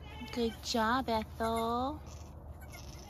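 A goat bleats loudly nearby.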